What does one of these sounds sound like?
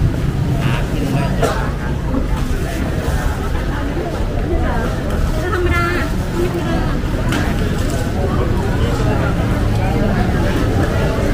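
A crowd of people chatters all around in a busy street.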